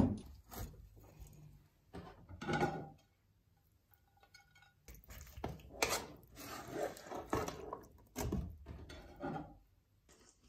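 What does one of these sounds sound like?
A spoon scrapes inside a metal pot.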